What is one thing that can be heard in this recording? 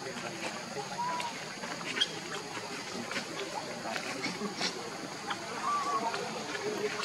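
A baby monkey squeaks softly, close by.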